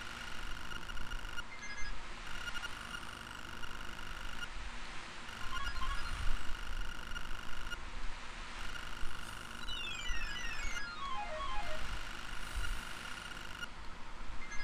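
Rapid electronic blips tick as game text types out.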